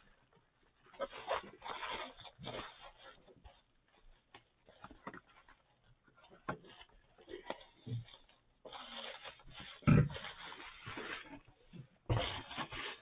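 Bubble wrap crinkles and rustles as it is handled.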